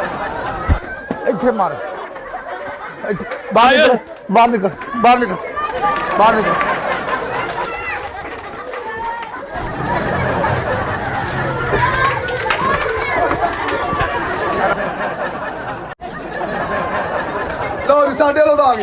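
Several men shout and argue excitedly close by.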